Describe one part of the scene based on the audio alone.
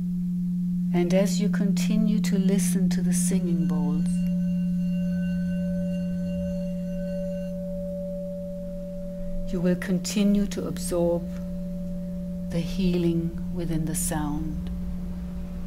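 A woman speaks softly.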